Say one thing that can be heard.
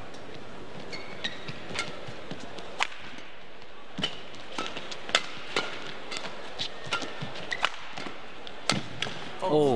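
A racket strikes a shuttlecock with sharp smacks in a rally.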